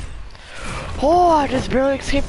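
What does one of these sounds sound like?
A shimmering magical blast whooshes loudly.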